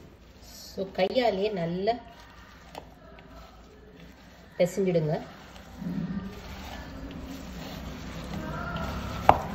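Hands squish and knead a moist food mixture in a bowl.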